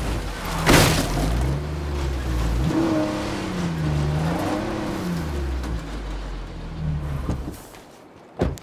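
A truck engine rumbles and revs over a dirt track.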